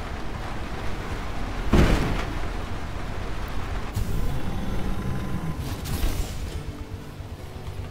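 A machine's engine hums as it drives along.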